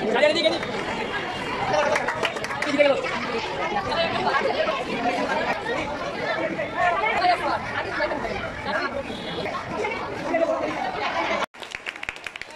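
A crowd of young people chatter and cheer close by.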